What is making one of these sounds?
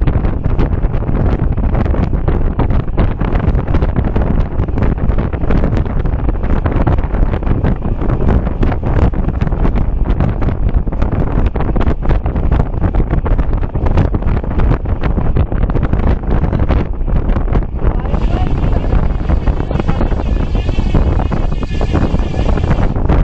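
Strong wind roars over the microphone of a fast-moving bicycle.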